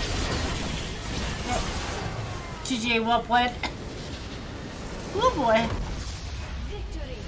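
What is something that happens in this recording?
Spell blasts and clashes from a video game ring out.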